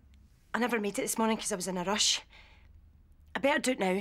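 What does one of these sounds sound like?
A woman speaks earnestly and close by.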